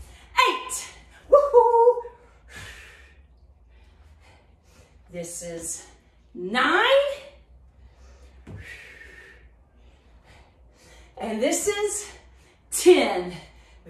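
A woman speaks with animation, close by, in short bursts.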